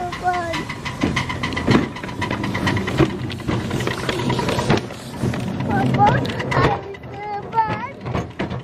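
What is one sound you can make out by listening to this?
Wheels of a miniature locomotive clatter over rails.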